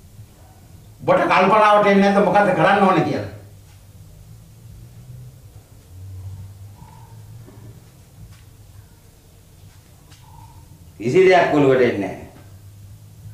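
An elderly man speaks loudly and with feeling, close by.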